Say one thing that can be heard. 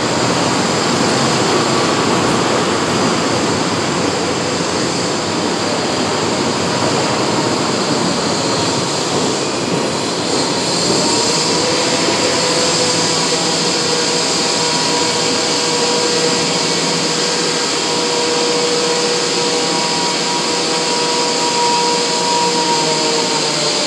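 A train rumbles and clatters past close by, then recedes down the track.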